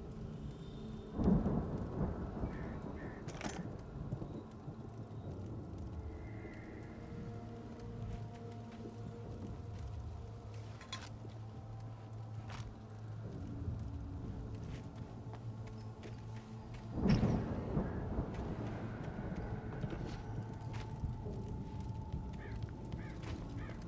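Footsteps crunch on gravel and dry leaves.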